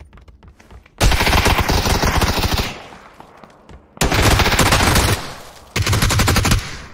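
An automatic rifle fires loud, rapid bursts.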